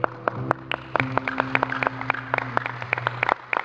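A woman sings into a microphone through loudspeakers.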